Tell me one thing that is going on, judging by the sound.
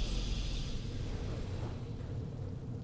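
A bright swoosh sounds at the start and quickly fades.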